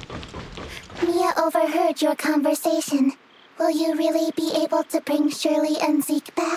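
A girl speaks in a high, bright voice.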